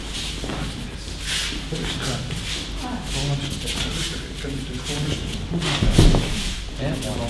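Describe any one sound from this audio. A man talks nearby in a large echoing hall.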